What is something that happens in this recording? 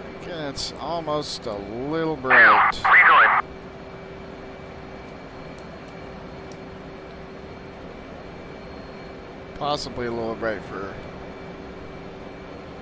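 A jet engine hums steadily inside a cockpit.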